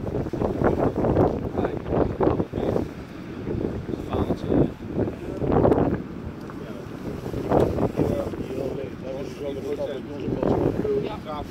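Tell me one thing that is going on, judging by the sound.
Wind gusts roar loudly outdoors.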